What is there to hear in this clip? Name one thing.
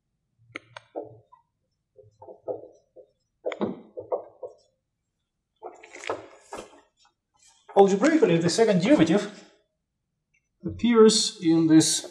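A man speaks calmly, as if teaching.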